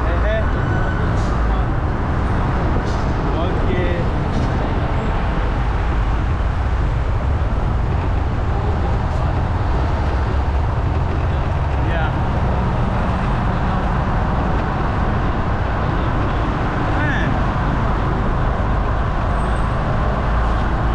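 Wind buffets the microphone steadily.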